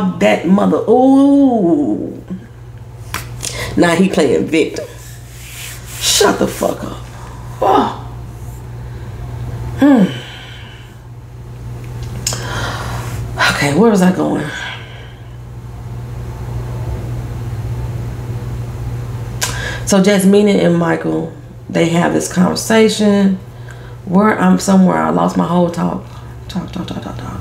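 A woman speaks calmly and slowly, close to a microphone, with long pauses.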